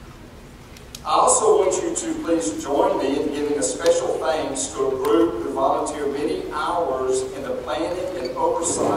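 A man speaks calmly through a microphone over loudspeakers.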